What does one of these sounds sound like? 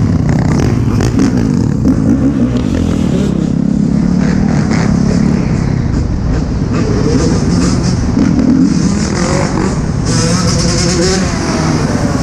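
Dirt bike engines rev and buzz loudly close by.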